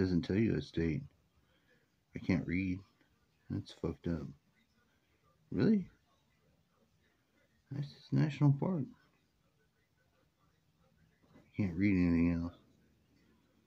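A man speaks calmly in short bursts, close to a webcam microphone as if on an online call.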